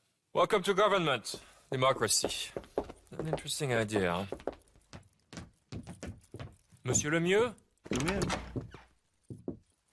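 A middle-aged man speaks calmly and politely, close by.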